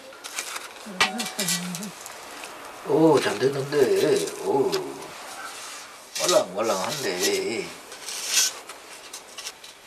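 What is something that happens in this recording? Metal tongs scrape and clink against stone.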